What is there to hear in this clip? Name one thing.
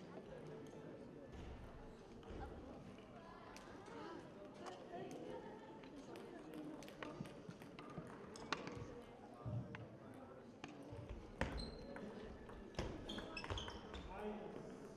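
A table tennis ball clicks back and forth between paddles and table.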